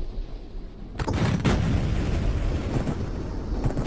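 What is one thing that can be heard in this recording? A rocket launches with a sudden whooshing roar.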